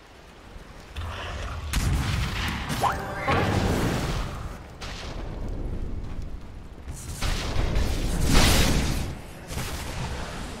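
Magic spells burst and crackle in a fight.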